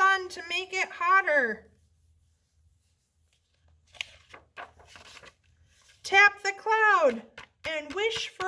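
A young woman reads aloud expressively, close by.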